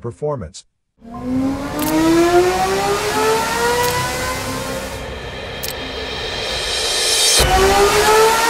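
A racing engine revs up loudly, its pitch rising steadily.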